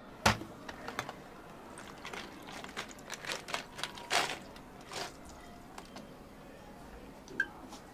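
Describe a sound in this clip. Milk pours over ice in a bottle.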